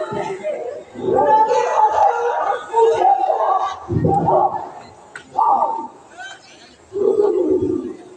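A woman cries out loudly.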